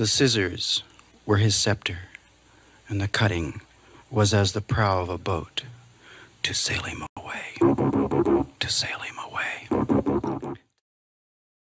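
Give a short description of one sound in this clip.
A middle-aged man recites slowly and expressively into a microphone.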